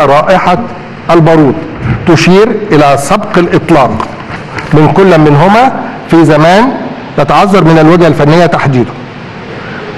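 An elderly man reads out loudly into a microphone.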